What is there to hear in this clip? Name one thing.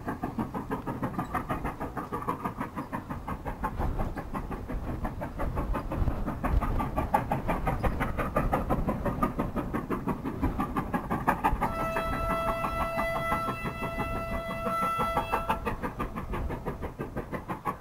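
A steam locomotive chuffs hard in quick, steady beats.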